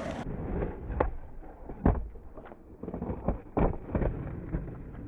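A skateboard clacks and knocks against concrete.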